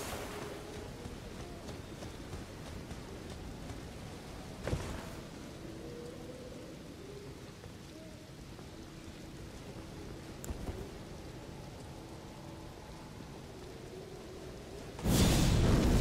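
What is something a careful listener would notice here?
Footsteps crunch over grass and stone.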